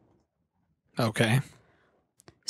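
A man speaks briefly into a microphone, close up.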